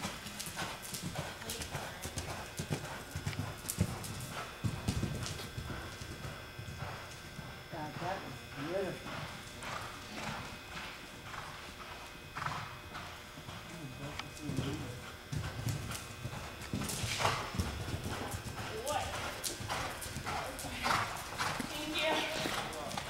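A horse's hooves thud softly on sand in a large echoing hall.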